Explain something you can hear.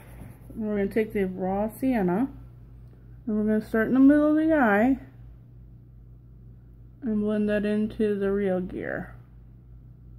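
A woman talks calmly and close up, in short bursts.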